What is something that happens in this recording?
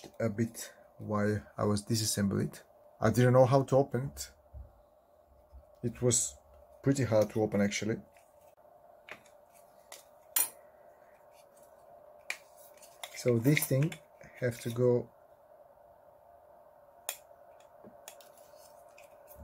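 Plastic parts click and clack as they are handled.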